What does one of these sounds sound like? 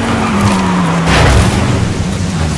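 A car crashes into a guardrail with a loud thud.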